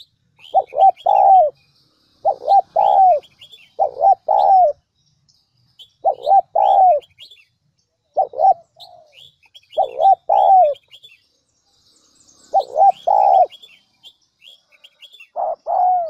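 A dove coos close by in short, repeated phrases.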